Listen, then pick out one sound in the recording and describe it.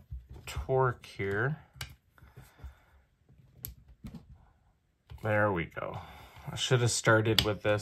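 A small screwdriver turns a screw with faint clicks.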